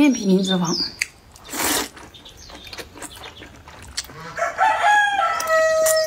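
A young woman slurps and chews noodles close to the microphone.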